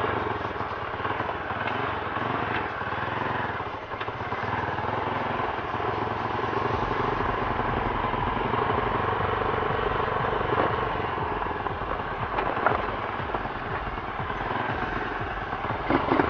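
Tyres rumble over a rough dirt track.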